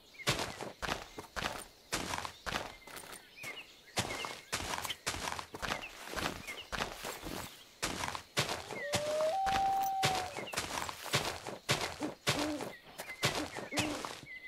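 A pickaxe digs into dirt and snow blocks with quick repeated crunching thuds.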